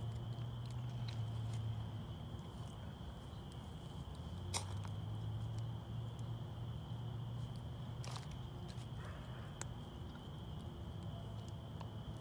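Dry sticks clatter softly as they are pushed into a fire.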